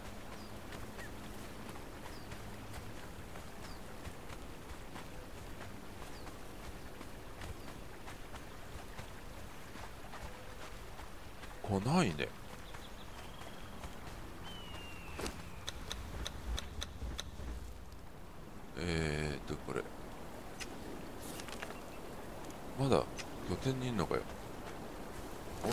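Rain falls steadily outdoors.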